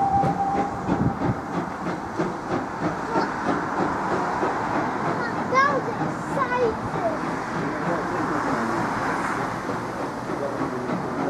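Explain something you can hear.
A train rumbles slowly away over the tracks.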